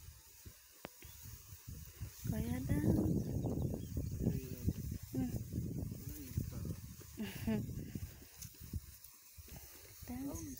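Leafy plants rustle underfoot as a person walks through them.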